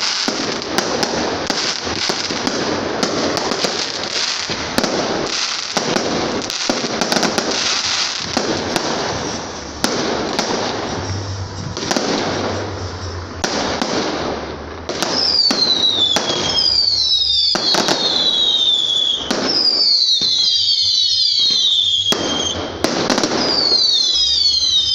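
Fireworks crackle and fizz in a steady rush.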